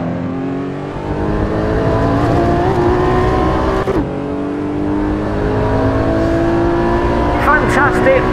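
A sports car engine roars steadily, its pitch climbing as it accelerates.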